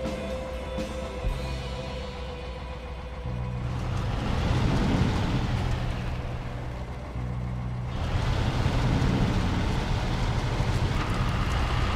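Tyres crunch and churn through snow.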